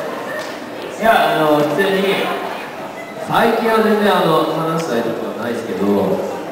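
A man speaks into a microphone through loudspeakers in a large echoing hall.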